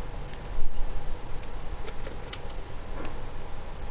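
A telephone's buttons click as they are pressed.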